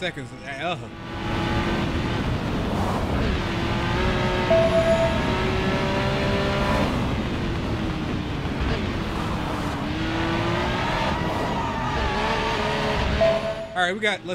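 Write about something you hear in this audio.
A car engine roars at high speed, its pitch rising and falling.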